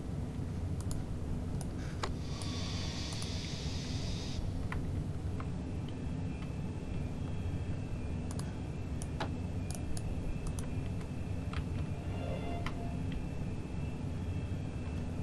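A train's motor hums low and steady.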